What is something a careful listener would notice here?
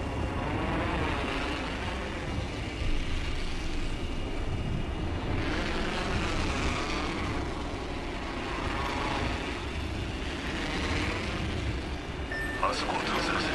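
Wind rushes loudly past during a fast fall through the air, swelling and easing.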